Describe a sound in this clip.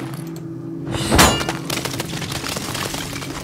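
Glass shatters as a window is smashed.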